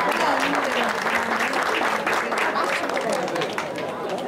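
A man claps his hands.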